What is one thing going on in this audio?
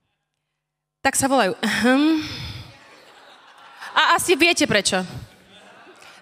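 A young woman speaks with animation through a microphone in a large echoing hall.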